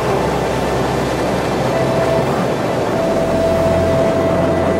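Strong wind blows across open ground.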